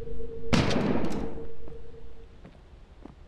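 Glass shatters and pieces scatter.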